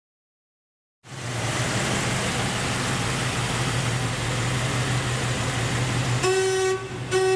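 A V8 muscle car engine rumbles.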